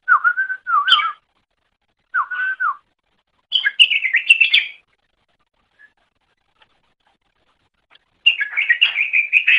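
A small bird sings bursts of clear, warbling whistles, with short pauses between them.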